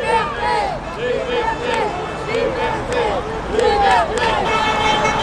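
A crowd of men and women chant and shout outdoors.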